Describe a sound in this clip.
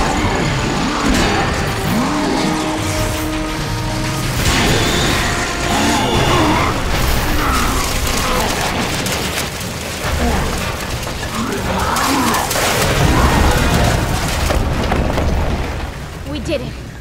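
A huge drilling machine grinds and roars through rock.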